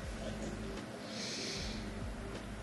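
A young woman sips a drink through a straw.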